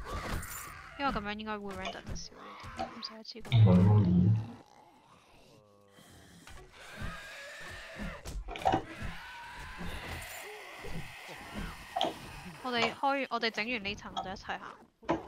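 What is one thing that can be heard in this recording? A creature snarls and groans harshly.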